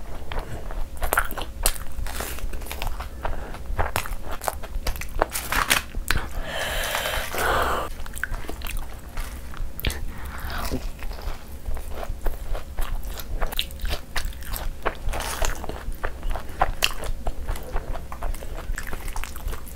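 Fingers squelch and mix soft saucy food.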